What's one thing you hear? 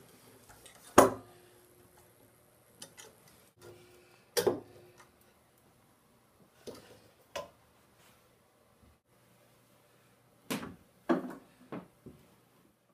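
Metal clamps clank and knock against wood.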